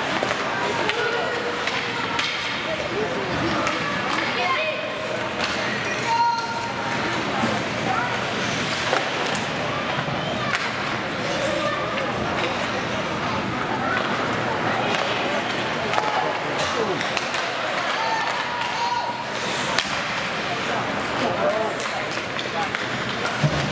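Hockey sticks clack against a puck now and then.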